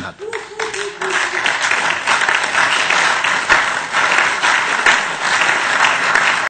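Applause fills a large hall.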